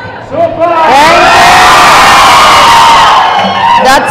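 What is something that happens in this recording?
A crowd claps.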